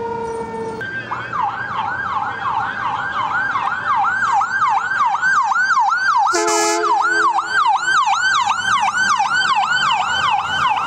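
An emergency siren yelps in a fast, rapid wail.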